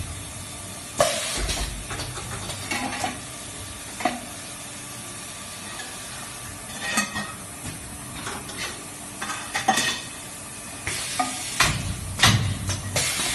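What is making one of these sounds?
A machine's press thumps down with a sharp knock.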